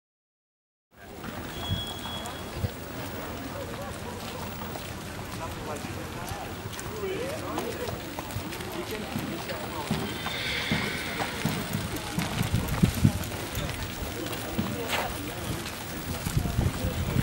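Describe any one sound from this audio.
A horse trots with soft, rhythmic hoofbeats on sand.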